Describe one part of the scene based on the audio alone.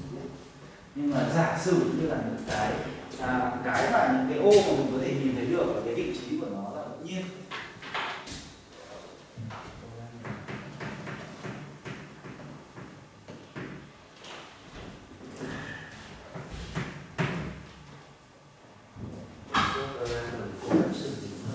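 A man lectures calmly.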